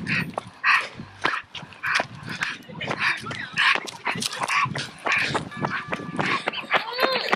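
Footsteps scuff steadily on asphalt.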